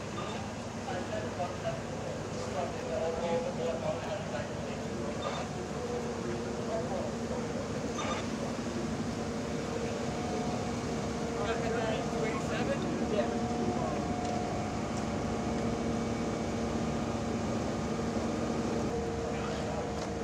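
A fire engine's motor idles with a steady hum.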